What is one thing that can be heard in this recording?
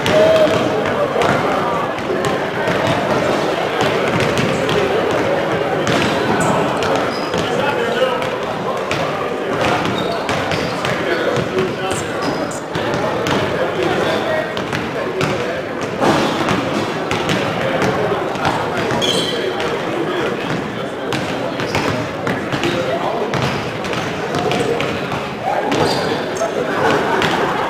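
A basketball bounces on a hardwood court in a large echoing gym.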